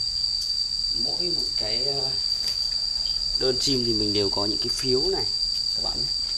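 Doves coo from a cage nearby.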